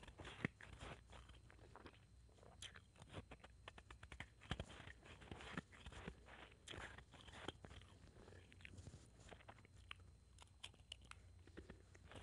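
A metal spoon clinks against a metal bowl.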